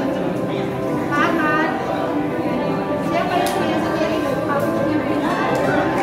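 A woman speaks through a microphone over a loudspeaker.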